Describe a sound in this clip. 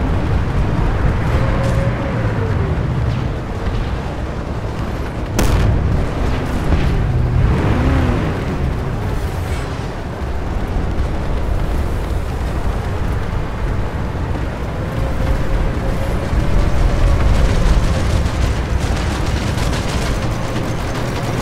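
An armoured vehicle's engine rumbles low and steady as it drives.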